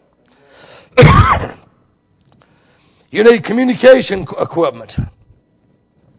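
A middle-aged man preaches with emphasis into a microphone.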